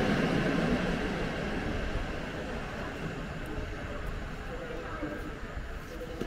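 A train rumbles away into the distance.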